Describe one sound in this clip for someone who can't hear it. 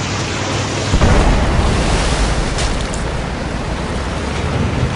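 A loud explosion bursts with a deep rumble.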